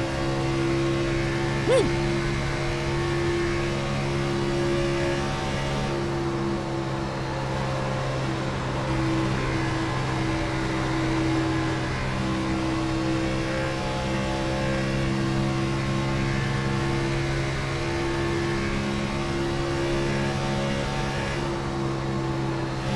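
Race car engines roar steadily at high speed.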